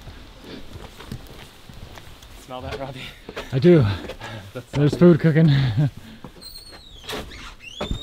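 Footsteps thud on wooden boards and steps.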